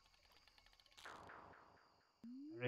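A bright tumble of falling notes sounds from a game.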